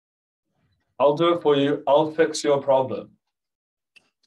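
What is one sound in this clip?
A young man speaks calmly over an online call.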